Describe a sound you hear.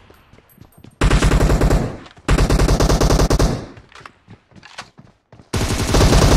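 Rapid gunfire bursts loudly in short volleys.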